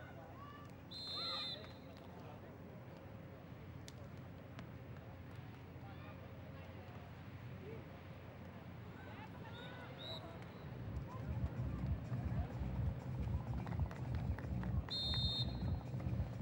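A referee's whistle blows short, sharp blasts.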